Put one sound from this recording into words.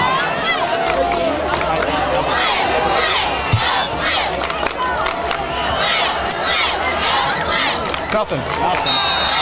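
A crowd of spectators shouts and chatters outdoors.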